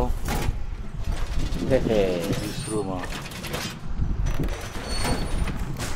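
Heavy metal panels clank and slam into place.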